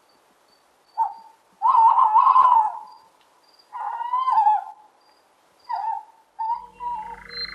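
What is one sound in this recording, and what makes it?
An owl hoots and screeches in short calls.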